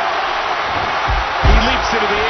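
A wrestler's body slams heavily onto the ring mat.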